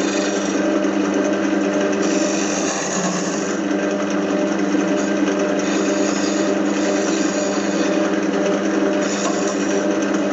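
A chisel scrapes and cuts spinning wood.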